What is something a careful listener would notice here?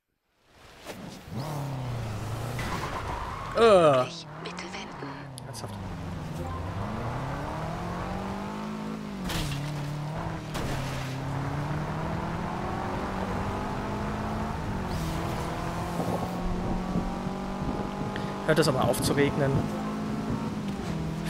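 A car engine revs hard and shifts through the gears.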